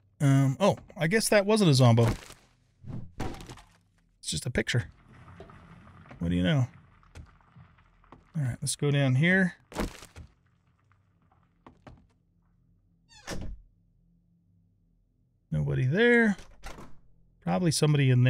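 An older man talks with animation, close to a microphone.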